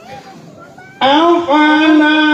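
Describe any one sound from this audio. An elderly man sings loudly through a microphone, holding long notes.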